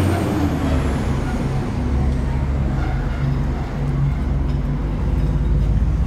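A didgeridoo plays a deep, steady drone close by.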